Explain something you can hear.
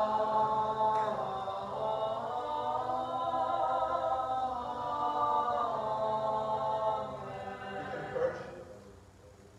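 A man chants in a large echoing hall.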